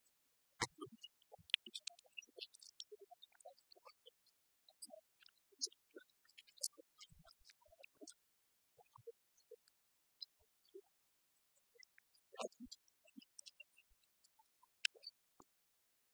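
Keys click on laptop keyboards.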